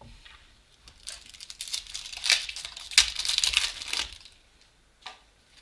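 A plastic wrapper crinkles and rustles up close.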